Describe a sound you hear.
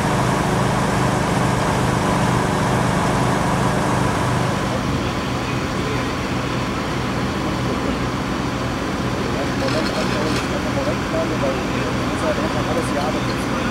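An engine idles steadily nearby.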